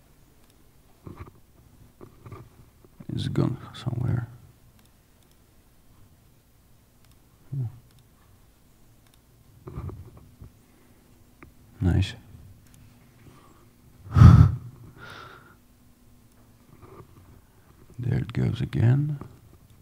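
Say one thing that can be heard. A man speaks into a headset microphone in short, halting bursts with long pauses.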